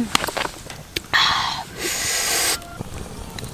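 A young woman lets out a loud, satisfied breathy sigh.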